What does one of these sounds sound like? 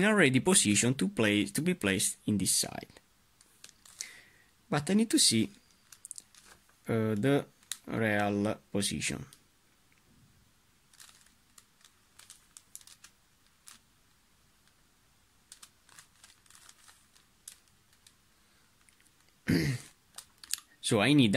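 Plastic puzzle pieces click softly as they are twisted.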